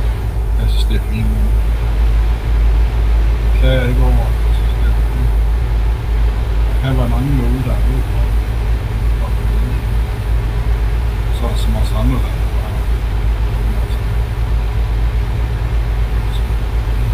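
Tyres roll along a road with a steady rush.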